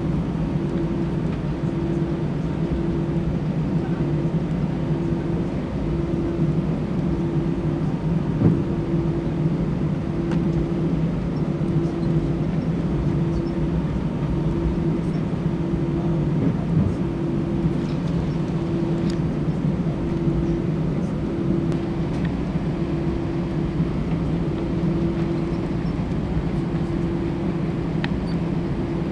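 Aircraft wheels rumble and thump over the runway.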